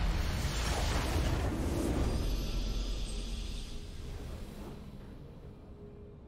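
A triumphant game victory fanfare bursts out and fades away.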